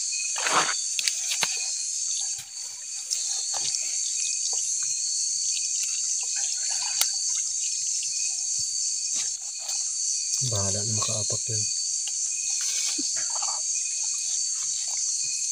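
Metal tools click and scrape against each other.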